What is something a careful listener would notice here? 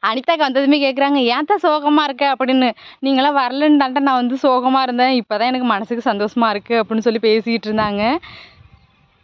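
A woman speaks loudly and tearfully close by.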